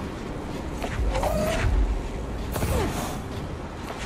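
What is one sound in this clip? A heavy crate whooshes through the air and crashes.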